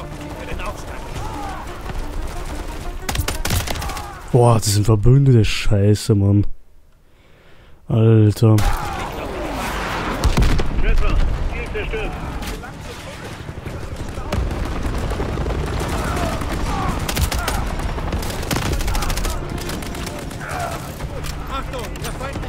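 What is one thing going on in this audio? Rifle shots ring out in quick bursts.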